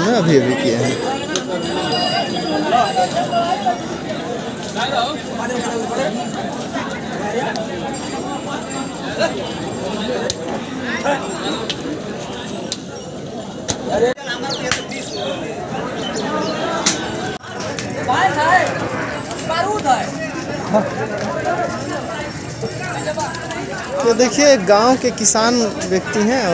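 A crowd of men chatter and call out nearby outdoors.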